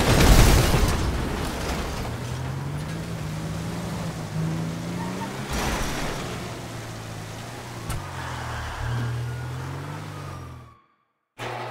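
A heavy armoured truck's engine drones as it drives along.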